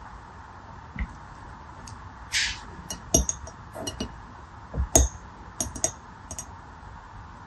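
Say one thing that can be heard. Glassy water beads click and rattle against each other and a plastic tray.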